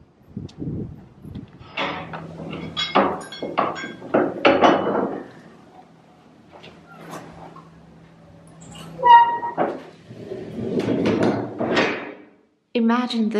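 A heavy wooden door creaks as it swings.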